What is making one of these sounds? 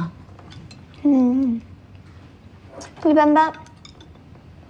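A boy answers briefly in a quiet voice.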